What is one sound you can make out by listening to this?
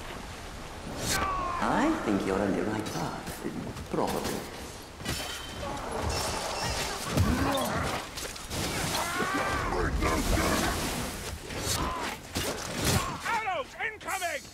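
Weapons clash and thud against creatures in a fight.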